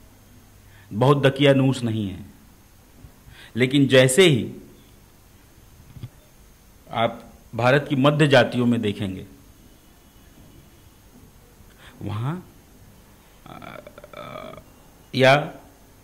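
A middle-aged man speaks calmly and with emphasis into a close microphone, in short bursts with pauses.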